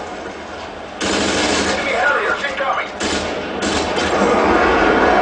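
Gunfire from a video game rattles through a television speaker.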